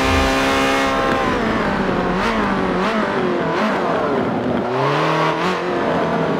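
A race car engine drops and revs up and down while slowing for corners.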